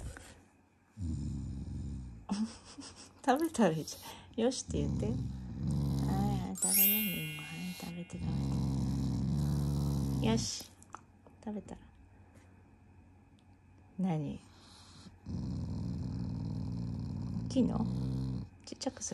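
A dog growls low and rumbling, close by.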